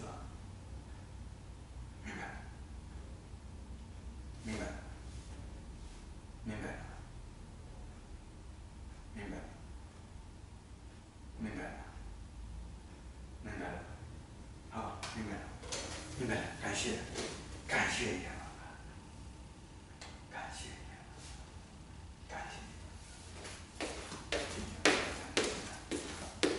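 An older man speaks in an echoing room.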